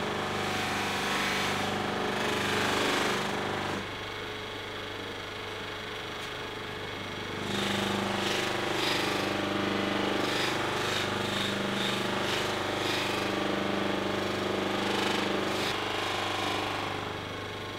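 A buffing wheel whirs and rubs loudly against a guitar's wooden neck.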